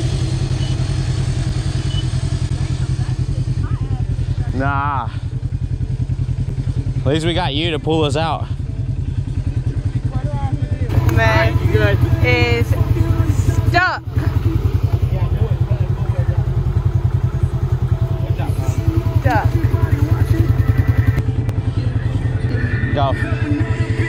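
An off-road vehicle engine idles with a steady low rumble.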